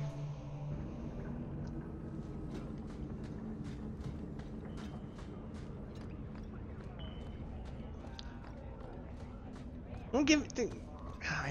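Footsteps tread lightly on stone.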